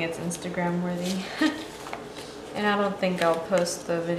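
Paper rustles softly as pages and sticker sheets are handled.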